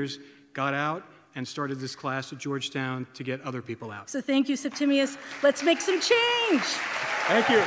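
A woman speaks into a microphone with emotion.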